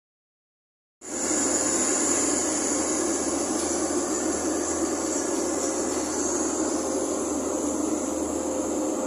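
A vehicle rumbles steadily along a road.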